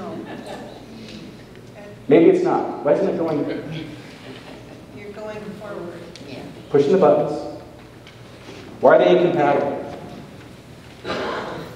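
A man speaks through a microphone in a large echoing hall, lecturing with animation.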